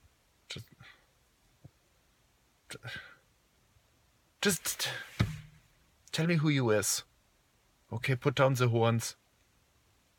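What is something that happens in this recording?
A man speaks close up in short bursts, with pauses between.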